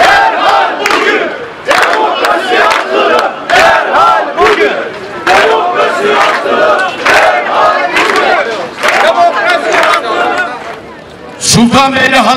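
A crowd of people chants and shouts outdoors.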